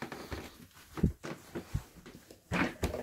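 Small objects knock lightly on a hard surface.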